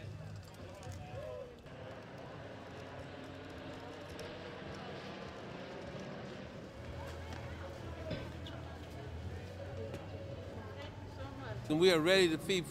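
People chatter softly outdoors.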